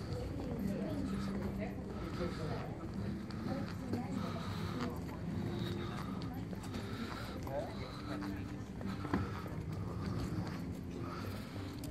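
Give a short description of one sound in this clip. A wheeled bin rumbles as it is rolled over paving.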